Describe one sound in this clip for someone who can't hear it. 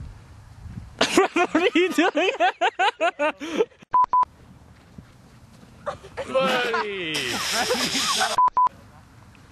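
A young woman laughs and shrieks close by.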